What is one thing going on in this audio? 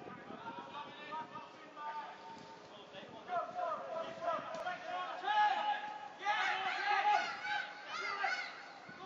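Adult men shout to each other from a distance across an outdoor football pitch.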